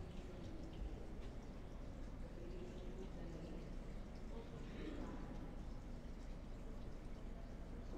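Footsteps tap softly on a wooden floor in a quiet, echoing room.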